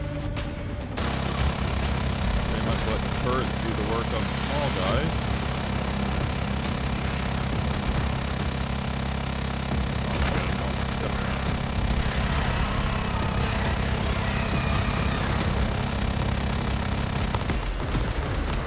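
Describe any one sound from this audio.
A heavy rotary gun fires in a long, rapid, continuous roar.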